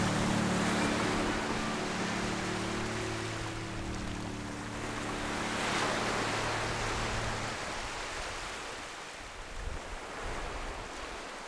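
Small waves wash up onto the shore and roll back in gentle swells.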